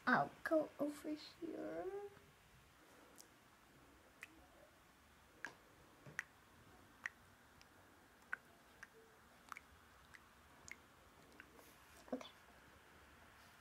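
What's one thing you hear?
Keys tap on a laptop keyboard.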